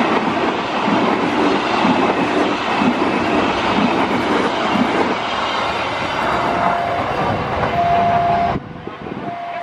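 A passing train rumbles loudly along the tracks.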